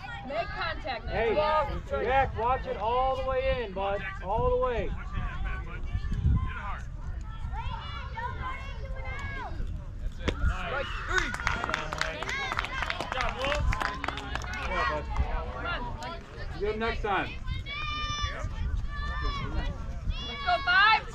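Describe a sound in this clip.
Children shout and cheer outdoors.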